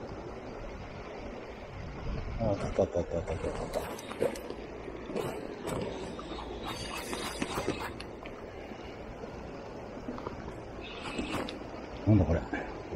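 Gentle waves wash against rocks outdoors.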